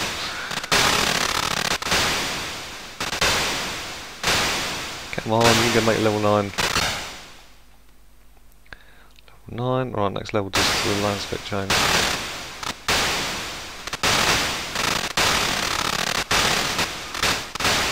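Explosions boom and hiss again and again, each dying away quickly.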